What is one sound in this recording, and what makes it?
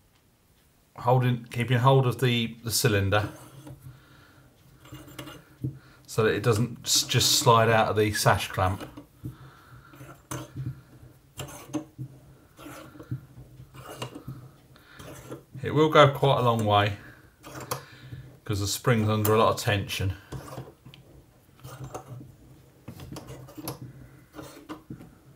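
Metal parts click and clack as they are handled.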